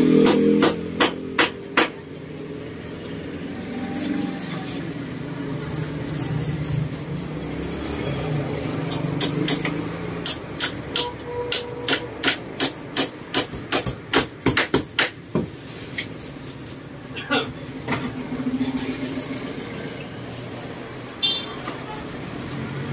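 A hand rubs across a woven cane seat.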